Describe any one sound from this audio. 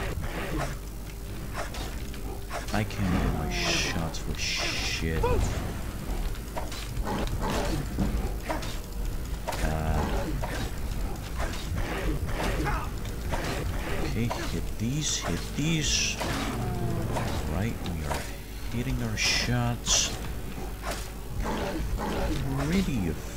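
Beasts snarl and roar fiercely.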